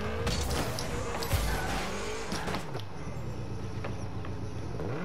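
A game car's boost hisses loudly.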